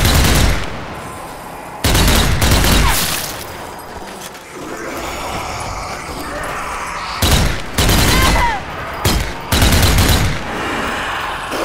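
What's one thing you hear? Rifle shots crack loudly, one at a time, with a booming echo.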